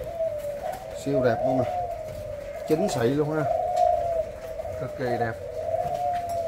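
Doves coo in low, throaty bursts close by.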